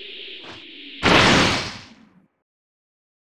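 A loud energy blast bursts and quickly fades.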